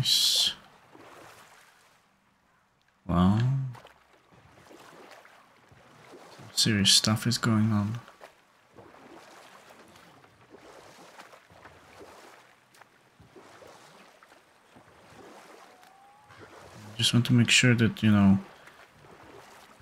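Oars splash steadily in calm water.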